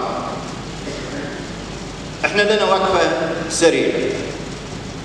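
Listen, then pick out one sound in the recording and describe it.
A man speaks through loudspeakers in a large echoing hall.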